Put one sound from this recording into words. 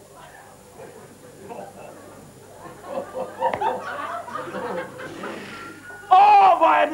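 A middle-aged man sobs and whimpers.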